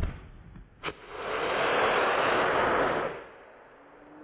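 A firework rocket hisses loudly as it shoots upward, then fades.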